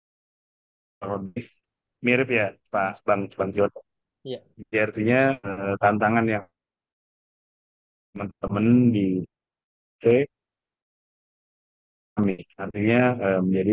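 A man speaks calmly over an online call, in bursts with pauses.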